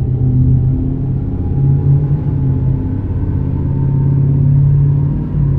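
A car engine hums steadily while driving at speed.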